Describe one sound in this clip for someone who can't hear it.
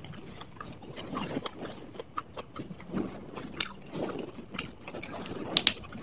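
A young woman chews crunchy food with her mouth close to a microphone.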